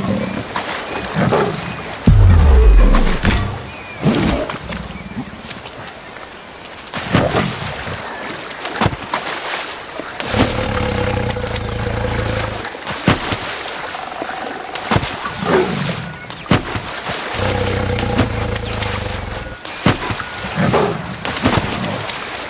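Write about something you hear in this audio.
Water splashes loudly again and again.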